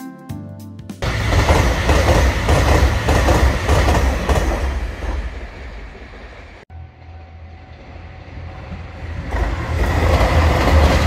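A train rushes past nearby with a loud rumble and clatter.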